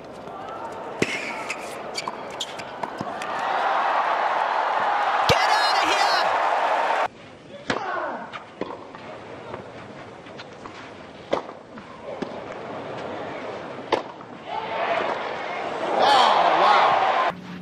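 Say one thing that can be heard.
A racket strikes a tennis ball.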